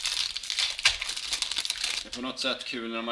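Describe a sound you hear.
A foil wrapper crinkles and rustles close by.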